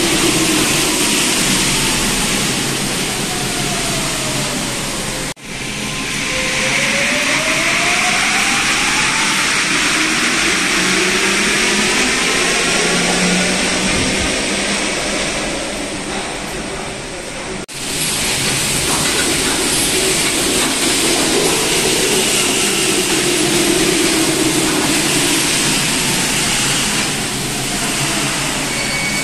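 A subway train rumbles past on the rails in an echoing underground station.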